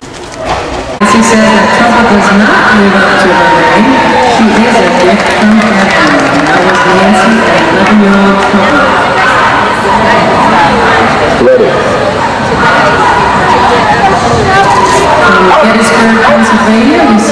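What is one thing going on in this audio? A crowd of people chatters in a large echoing arena.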